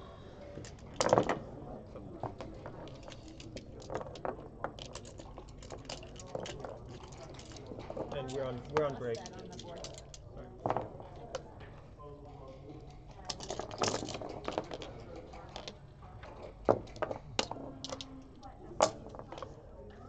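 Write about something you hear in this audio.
Plastic checkers click and clatter as they are moved on a board.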